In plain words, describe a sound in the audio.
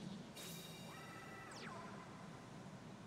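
A bright electronic chime rings out and quickly fades.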